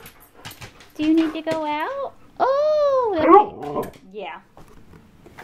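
A dog howls and whines loudly, close by.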